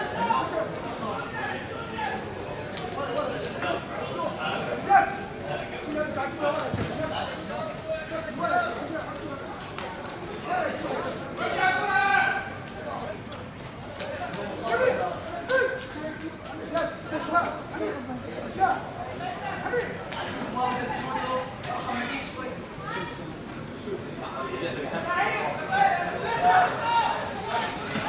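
Young men shout and call to each other outdoors across an open field.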